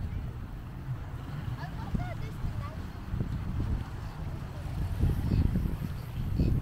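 Small waves wash gently over rocks on the shore.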